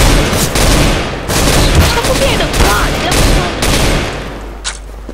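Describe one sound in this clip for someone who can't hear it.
A rifle fires a rapid series of shots.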